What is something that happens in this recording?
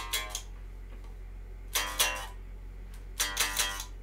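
An electric guitar plays a few notes.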